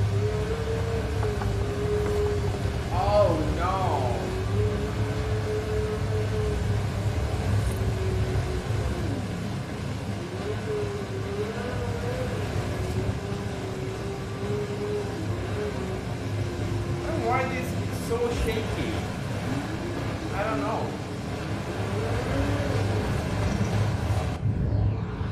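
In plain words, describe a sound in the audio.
A race car engine drones at high speed, its pitch dipping and rising with gear changes.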